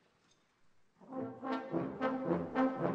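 An orchestra starts playing loudly.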